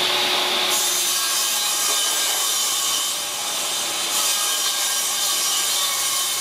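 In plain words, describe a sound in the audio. A large wooden board scrapes as it is slid into place.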